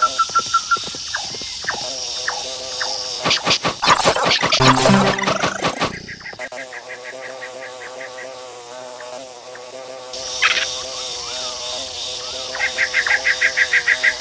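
A bee buzzes steadily.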